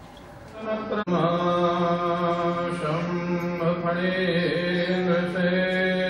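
A man chants in long, held tones through a microphone and loudspeakers.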